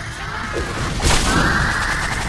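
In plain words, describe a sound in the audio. A game explosion bursts with a crackling boom.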